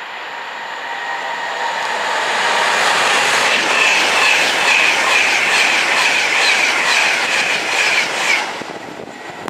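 A high-speed train roars past at close range, then cuts off abruptly.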